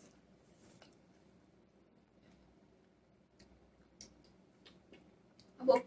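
A boy chews juicy mango with soft wet smacking sounds.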